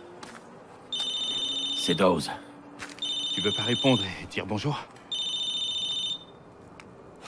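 A phone rings with repeated electronic tones.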